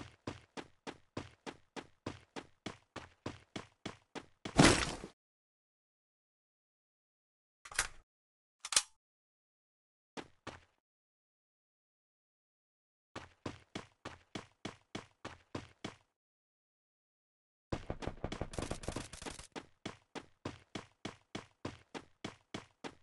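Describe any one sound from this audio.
Footsteps thud quickly and evenly on hard ground.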